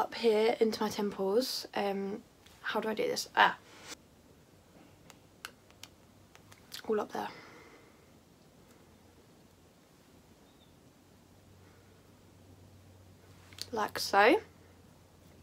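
A young woman talks casually and close up, in short bursts with pauses.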